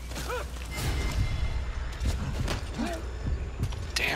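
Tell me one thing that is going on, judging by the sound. A scuffle ends with bodies thudding on the ground.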